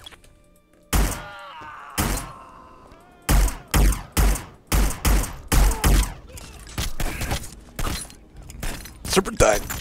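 Gunshots fire in rapid bursts, echoing in a large hall.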